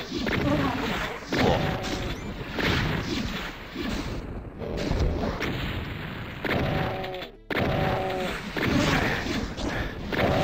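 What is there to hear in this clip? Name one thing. Gunshots blast repeatedly.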